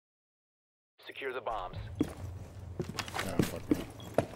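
Footsteps and gear rattle as a player moves.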